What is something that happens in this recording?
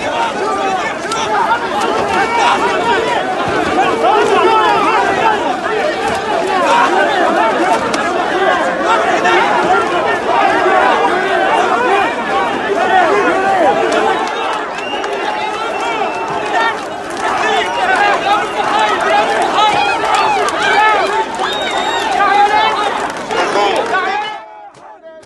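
A large crowd of men and women chants and shouts loudly outdoors, close by.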